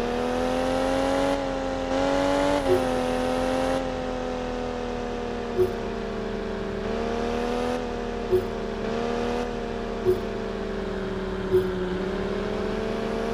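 A racing car engine hums steadily at high speed, its pitch rising and falling slightly.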